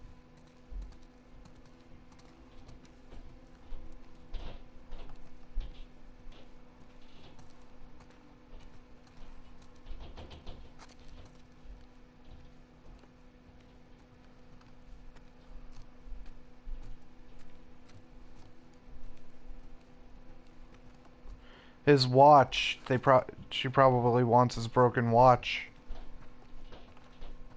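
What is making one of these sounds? Footsteps tread on wooden floorboards and stairs.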